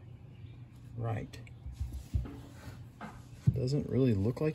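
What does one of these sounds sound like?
Small metal parts clink and tap as they are handled.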